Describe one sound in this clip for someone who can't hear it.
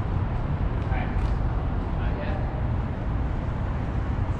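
Sneakers scuff and step on a concrete floor.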